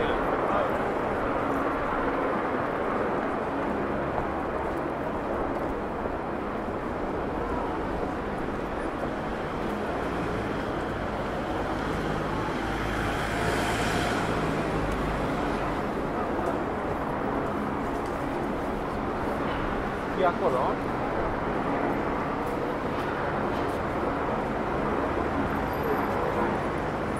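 Traffic rumbles along a nearby street.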